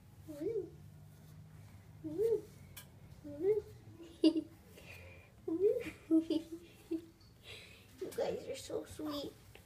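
A hand rustles against a cat's fur close by.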